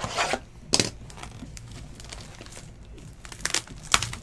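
Cards slide and rustle against each other.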